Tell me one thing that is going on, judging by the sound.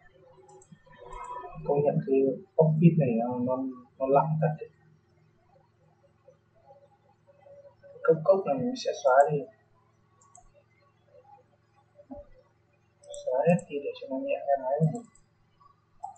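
A young man talks calmly and close to a microphone, in short bursts.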